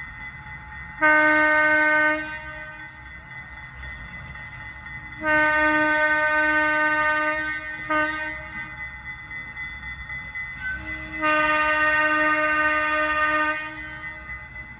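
A train horn blows loudly in several long blasts.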